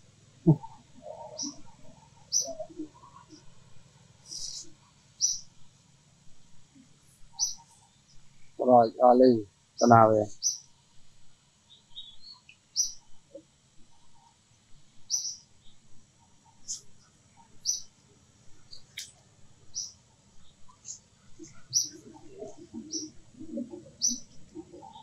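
Leaves rustle softly as a monkey shifts on the branches.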